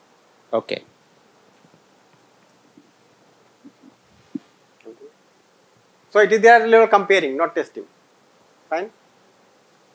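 A man speaks calmly through a microphone in short bursts.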